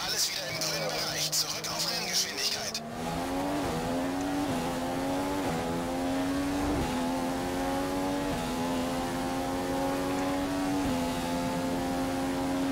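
A racing car engine screams as it revs up through the gears.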